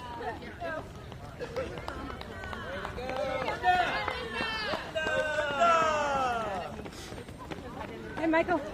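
Men and women call out and cheer loudly nearby.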